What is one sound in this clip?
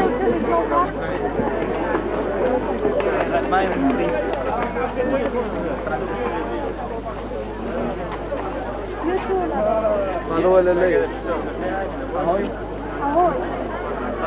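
A crowd of young men and women chatter nearby outdoors.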